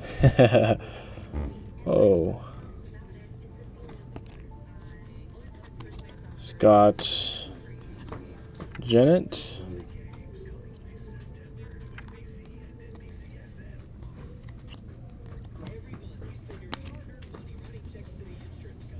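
Stiff cards rustle and slide against each other as they are shuffled by hand.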